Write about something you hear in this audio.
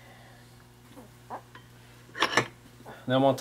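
Metal tools clink against each other on a workbench.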